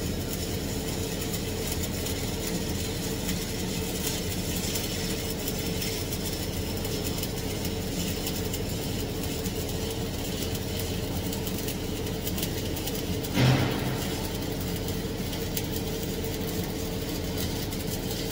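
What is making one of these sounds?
A welding torch crackles and buzzes steadily.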